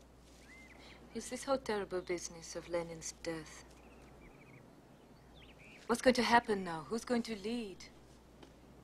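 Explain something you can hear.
A young woman speaks quietly and earnestly outdoors.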